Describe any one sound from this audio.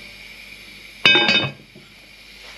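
A heavy lid clanks down onto a pot.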